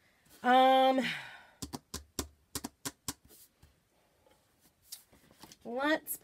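Hands tap and smooth a plastic stencil sheet on a table.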